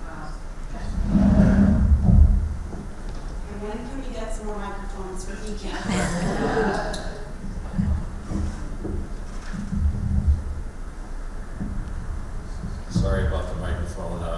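A microphone knocks and thumps as it is passed along a table.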